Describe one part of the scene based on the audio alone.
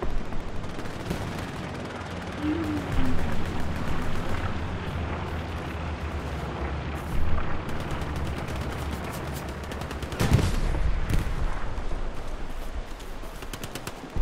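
Explosions and gunfire rumble and boom in the distance.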